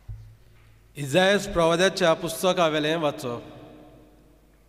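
A second man speaks calmly through a microphone.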